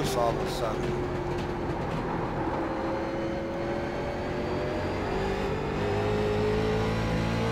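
A race car engine drones steadily, its pitch rising and falling with the throttle.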